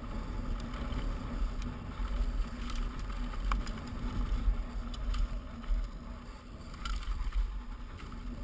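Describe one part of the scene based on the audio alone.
Mountain bike tyres roll fast downhill over dry, rocky dirt.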